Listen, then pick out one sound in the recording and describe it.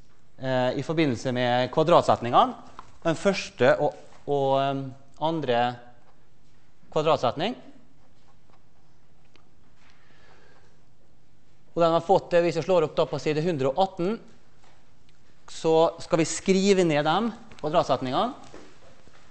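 A man lectures in a large echoing hall, heard through a microphone.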